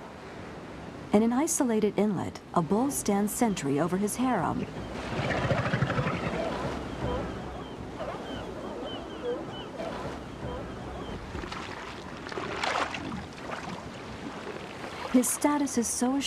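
Surf washes onto a beach.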